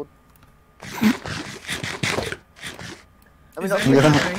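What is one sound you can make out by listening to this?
A game character eats with crunching sounds.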